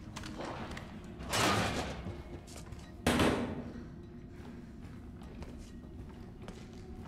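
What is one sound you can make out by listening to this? Footsteps walk over a littered floor.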